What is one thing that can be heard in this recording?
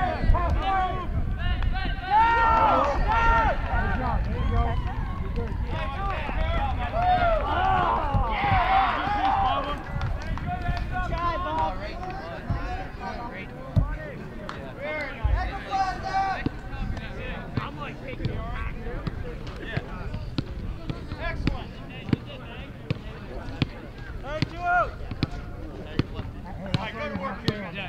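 Men shout and call out across an open outdoor field.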